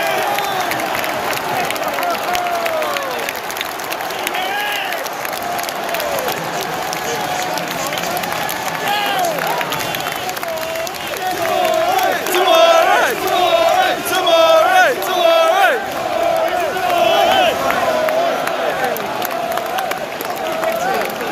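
A large stadium crowd sings and chants loudly outdoors.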